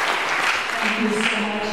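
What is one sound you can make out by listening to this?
An older woman begins speaking into a microphone.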